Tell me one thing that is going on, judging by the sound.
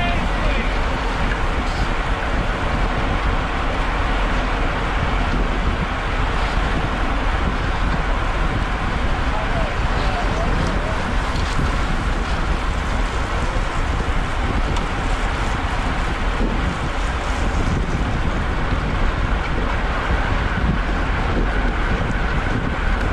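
Wind rushes steadily past, loud and roaring.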